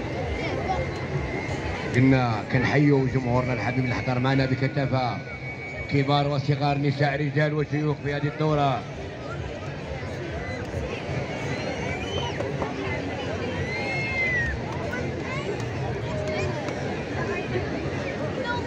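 A large crowd murmurs and chatters outdoors at a distance.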